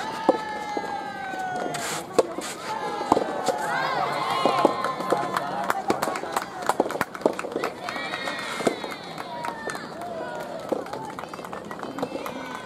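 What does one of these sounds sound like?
Young women call out and cheer outdoors.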